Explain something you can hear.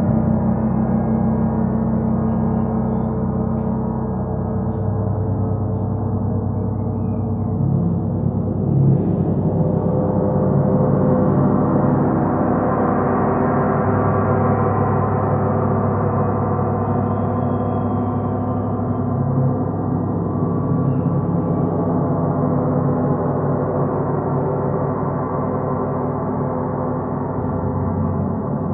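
Large gongs are played, a deep shimmering roar swelling and ringing on.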